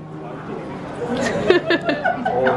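A young woman laughs loudly up close.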